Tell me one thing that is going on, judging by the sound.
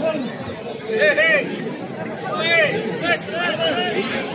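Men and women in the crowd shout and whistle in excitement.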